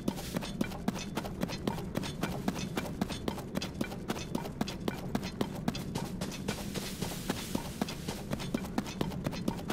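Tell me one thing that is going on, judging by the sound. Quick running footsteps thud and rustle through grass.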